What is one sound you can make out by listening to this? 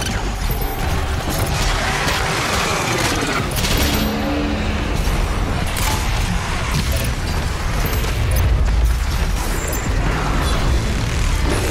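Monsters roar and screech.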